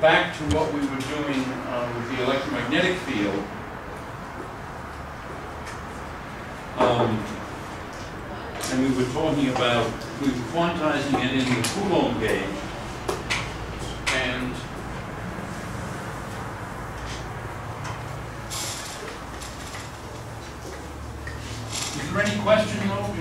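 An elderly man lectures calmly in a room with a slight echo.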